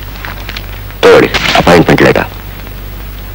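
A man speaks loudly and forcefully.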